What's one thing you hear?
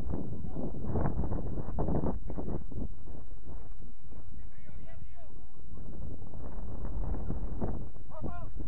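Young men call out to each other across an open field in the distance.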